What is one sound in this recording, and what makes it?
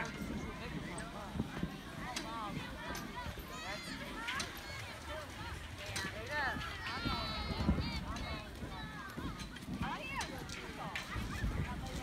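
Young children shout and squeal nearby.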